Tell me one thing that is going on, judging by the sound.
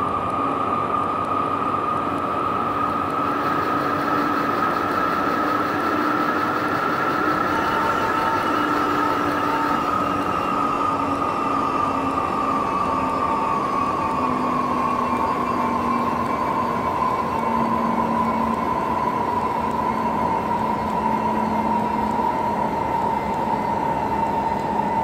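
A train rumbles along the track.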